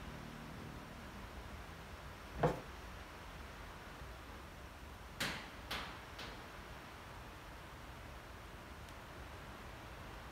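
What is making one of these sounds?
Small plastic parts click as a cable is handled.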